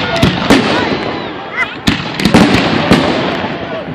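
A firework rocket whooshes upward.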